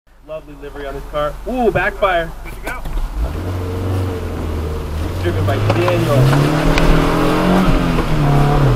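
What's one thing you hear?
Rain patters on a car's windshield.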